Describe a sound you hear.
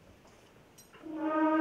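A youth wind orchestra strikes up a loud, sustained chord.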